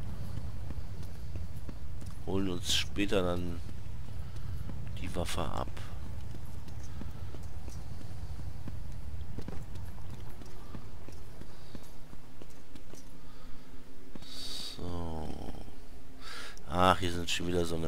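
Heavy footsteps tread on stone.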